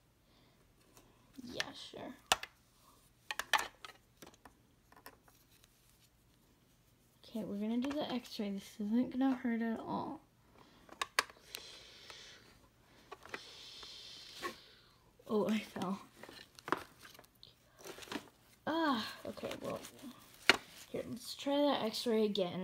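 Stiff doll fabric rustles as it is handled.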